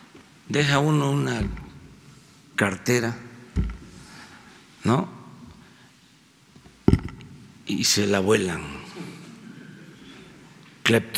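An elderly man speaks slowly and firmly into a microphone, with pauses between phrases.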